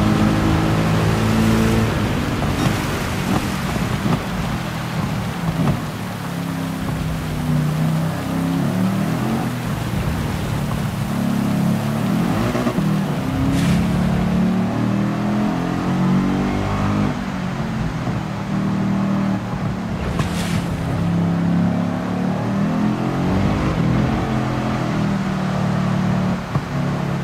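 A racing car engine revs hard, rising and dropping in pitch with each gear change.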